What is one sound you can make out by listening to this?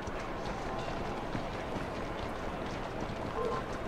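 Horse hooves clop on a cobbled street.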